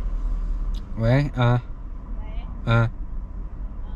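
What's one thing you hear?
A young man speaks briefly into a phone.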